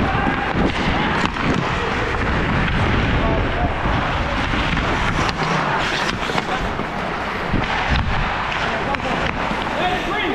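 Hockey sticks click and slap against a puck.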